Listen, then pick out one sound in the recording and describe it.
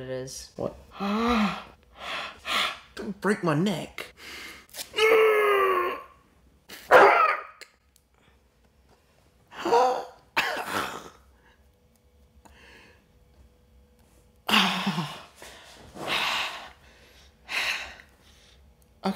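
A young man cries out loudly in pain.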